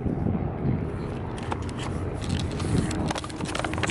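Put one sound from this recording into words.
A paper bag rustles and crinkles close by.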